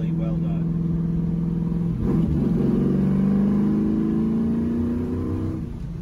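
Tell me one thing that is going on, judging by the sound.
A car engine drones steadily, then revs up after a gear change.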